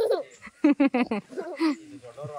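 A young child laughs loudly up close.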